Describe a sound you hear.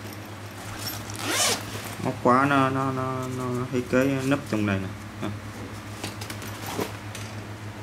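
A zipper is pulled open.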